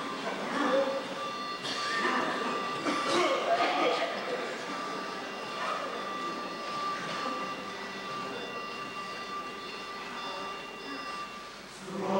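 A large choir sings together in a hall, heard from a distance.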